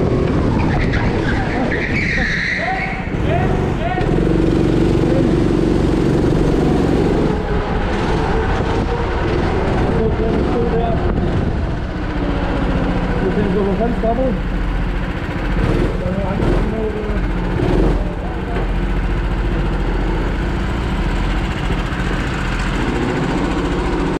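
Other go-kart engines buzz close by.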